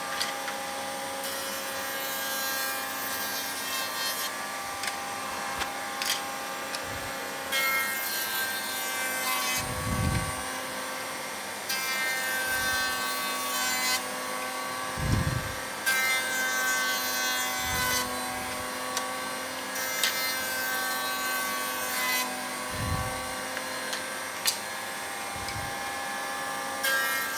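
A router whines steadily throughout.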